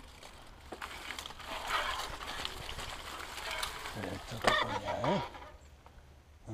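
Bicycle tyres roll and crunch over a sandy trail.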